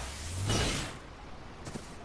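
An energy blade swings with a loud whoosh.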